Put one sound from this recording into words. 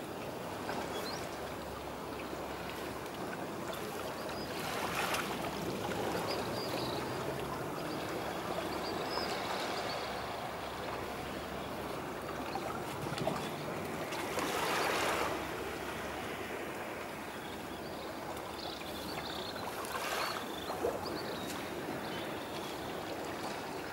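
Small waves lap gently at the water's edge.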